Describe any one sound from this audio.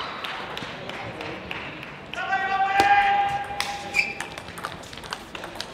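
A table tennis ball clicks off paddles and bounces on a table in a fast rally.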